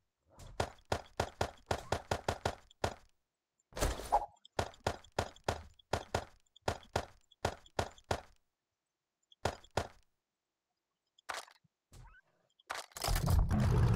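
Items click quickly as they are moved between inventory slots.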